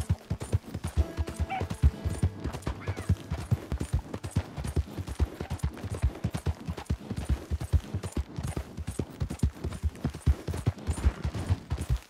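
Horse hooves thud rapidly on soft ground at a gallop.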